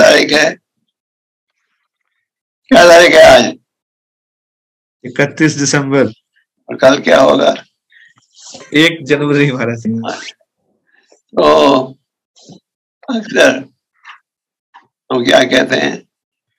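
An elderly man speaks with animation over an online call, in short bursts with pauses.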